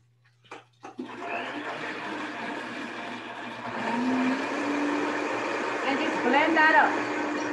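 A blender whirs loudly.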